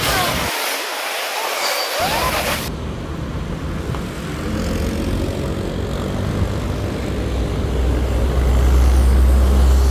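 Traffic rolls past steadily nearby.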